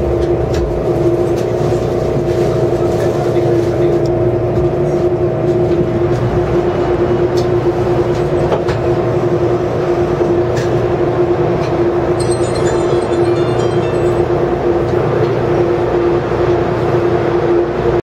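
A train hums and rumbles steadily as it rides along the track.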